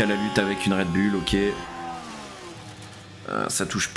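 A racing car engine roars at high revs and changes pitch through gear shifts.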